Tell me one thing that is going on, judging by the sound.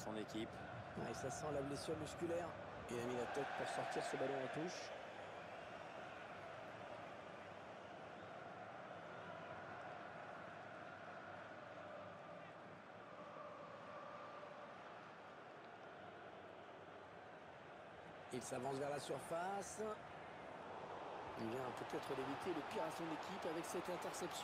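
A large crowd murmurs steadily in a stadium.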